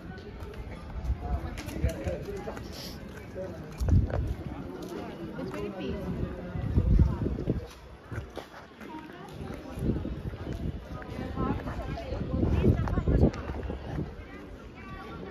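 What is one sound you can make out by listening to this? Men and women chat nearby.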